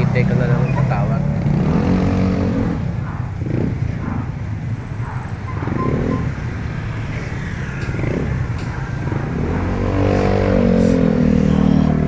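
Motorcycle and tricycle engines rumble along a street outdoors.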